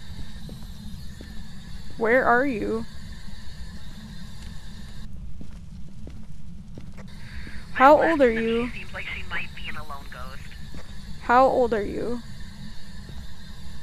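A radio crackles with static while tuning between stations.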